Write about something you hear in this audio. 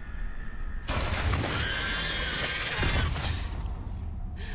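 A creature lets out a loud, rasping shriek.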